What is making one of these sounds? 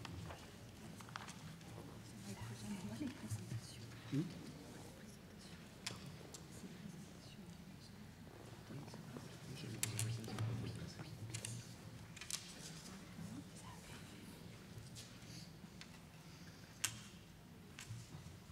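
A man speaks quietly into a microphone over a loudspeaker in a large echoing hall.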